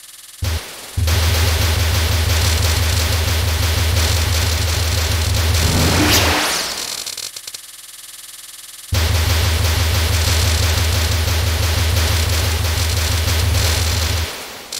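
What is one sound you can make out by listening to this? Rapid electronic game shots fire in a fast, buzzing stream.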